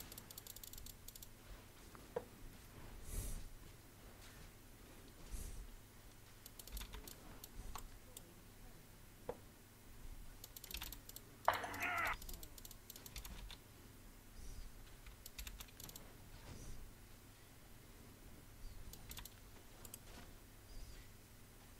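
Game sound effects of spells and attacks go off in short bursts.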